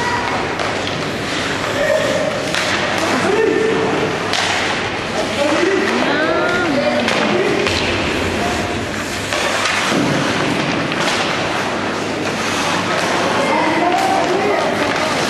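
Hockey sticks clack against the ice and the puck.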